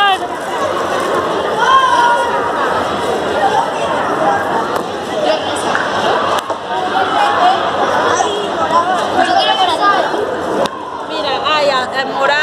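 Young children chatter and shout close by.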